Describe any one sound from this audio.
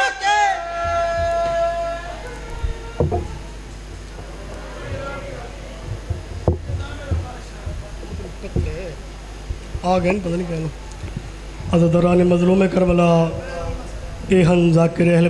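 A man chants loudly into a microphone over a loudspeaker.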